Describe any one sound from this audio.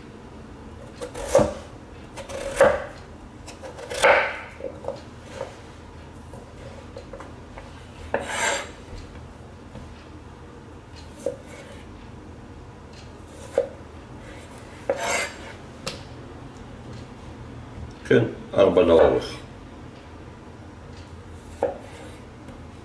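A knife taps and chops on a plastic cutting board.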